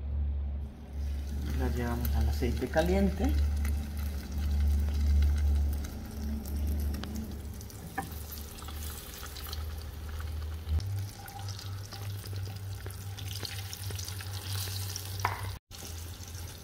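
Oil sizzles and crackles as food fries in a hot pan.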